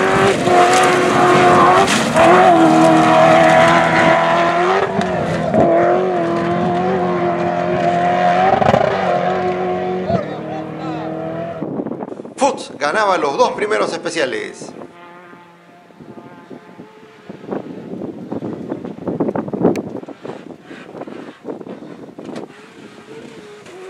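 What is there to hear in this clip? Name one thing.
A rally car engine roars loudly at high revs.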